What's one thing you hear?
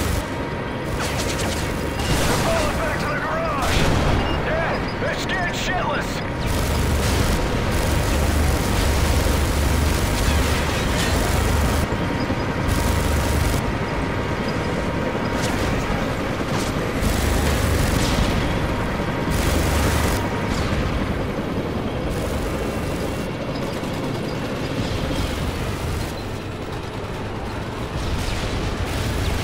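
A heavy tank engine rumbles and clanks steadily.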